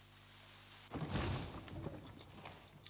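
An axe swooshes through the air.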